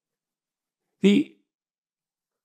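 An older man speaks a brief word calmly and close to a microphone.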